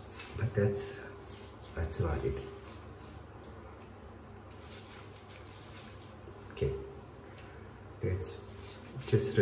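A man rubs shaving foam on his face with soft squelching.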